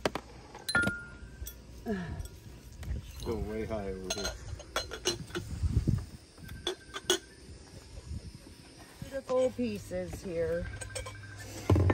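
Glass items clink together as they are handled.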